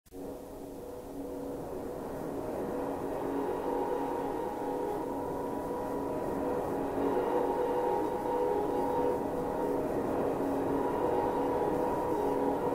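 A phone rings with a muffled tune that slowly grows louder.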